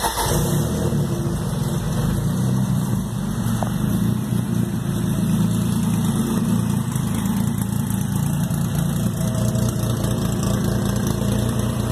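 A car engine idles with a loud, rough, steady rumble.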